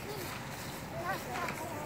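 Children's voices chatter faintly outdoors.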